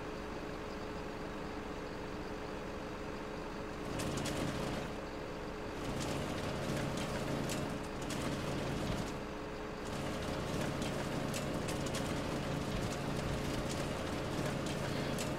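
A heavy diesel engine hums steadily.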